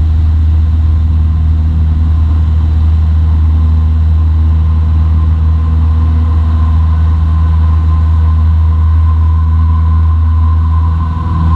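A small plane's propeller engine drones loudly and steadily, heard from inside the cabin.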